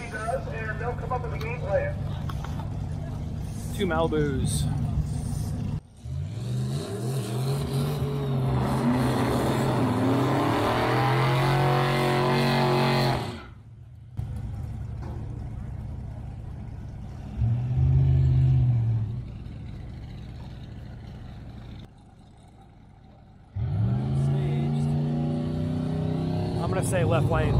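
Powerful race car engines roar and rev loudly outdoors.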